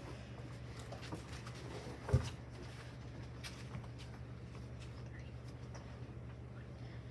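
Children shuffle and step about on a hard floor.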